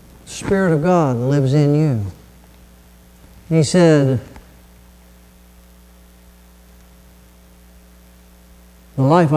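A middle-aged man speaks calmly through a microphone in a large echoing hall, pausing between phrases.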